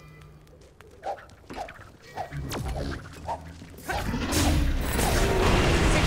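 Sword blows land with sharp, repeated hits.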